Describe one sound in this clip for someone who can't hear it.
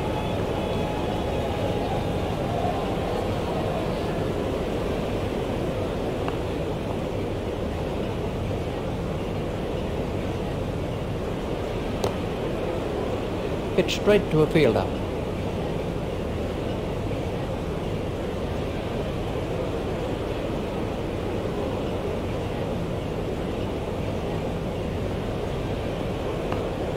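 A stadium crowd murmurs steadily in the background.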